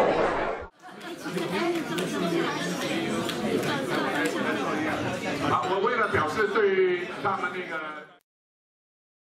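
A crowd of people chatters in a room.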